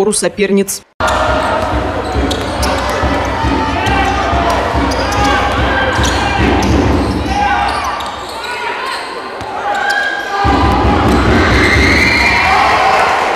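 A crowd in a large echoing hall murmurs and cheers.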